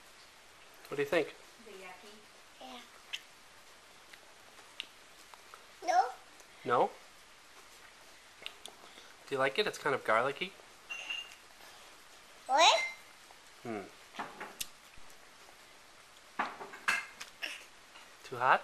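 A toddler girl babbles and whines up close.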